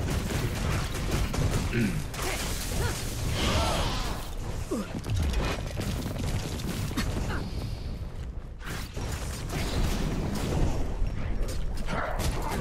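Magic impacts thud as enemies are struck.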